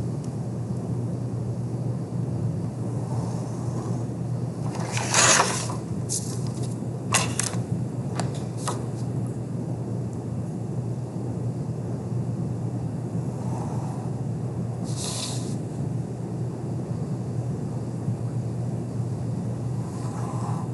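A pencil scratches faintly on paper.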